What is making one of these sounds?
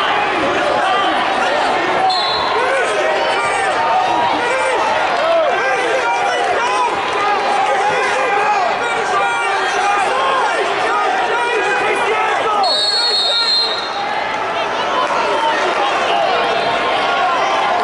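A large crowd chatters and calls out in a big echoing hall.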